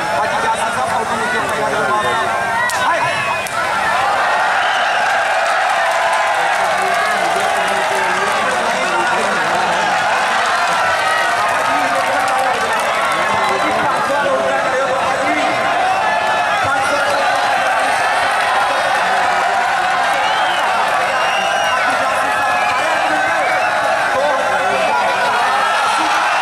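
A large outdoor crowd of men chatters and cheers loudly.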